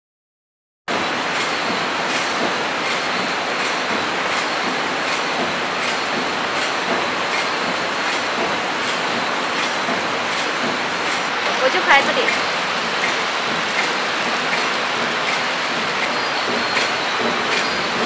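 A flow-wrap packing machine runs with a rhythmic clatter.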